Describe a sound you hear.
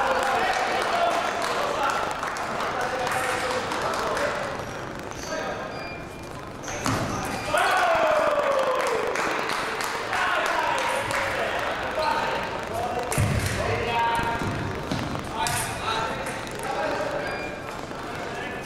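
Fencers' shoes squeak and patter on the piste.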